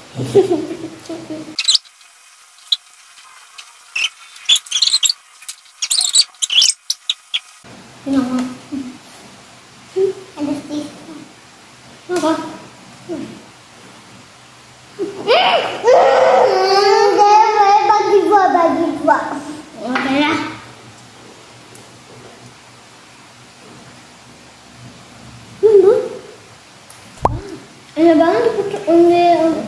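Young boys talk with animation close by.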